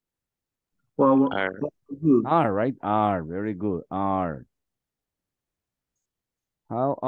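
A man speaks calmly through an online call, with pauses.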